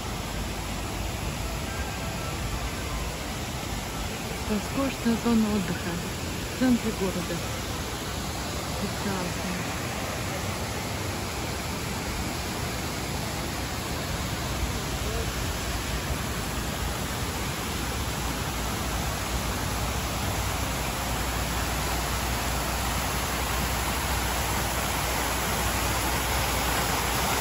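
Fountains splash and spray steadily outdoors.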